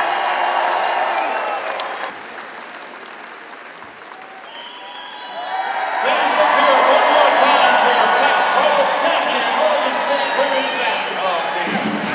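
A large crowd cheers and whistles in a big echoing arena.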